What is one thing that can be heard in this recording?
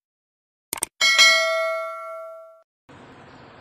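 A bright bell chimes and rings out.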